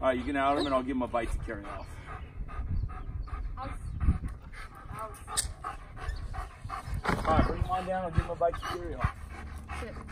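An adult man talks calmly nearby outdoors.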